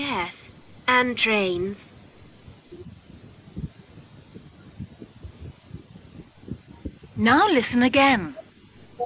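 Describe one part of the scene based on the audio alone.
A young boy speaks through an online call.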